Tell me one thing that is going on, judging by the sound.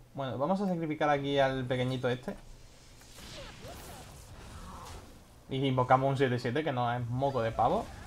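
Magical game effects whoosh and chime as cards are played.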